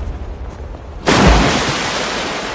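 A body plunges into water with a big splash.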